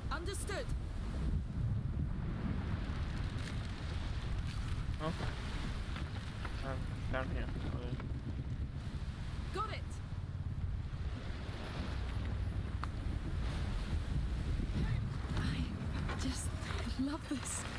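Wind and sea waves rush steadily.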